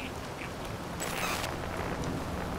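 A radio crackles with a short burst of static.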